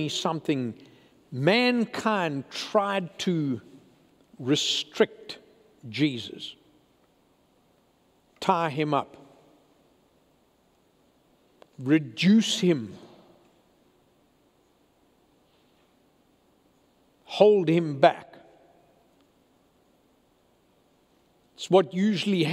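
An elderly man speaks with emphasis into a microphone, pausing often, in a slightly echoing room.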